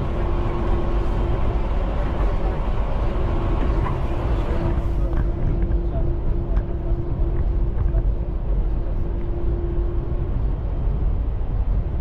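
An electric train rumbles steadily along an elevated track.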